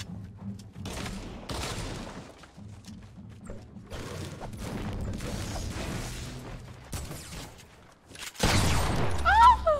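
Building pieces clatter and thud as they are placed in a game.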